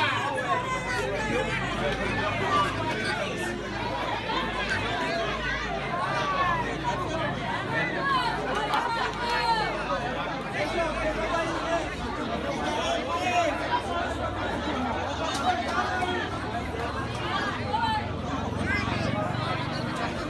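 Several men argue and shout at once outdoors, a short distance away.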